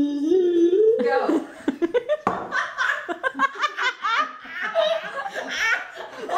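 An elderly woman laughs nearby.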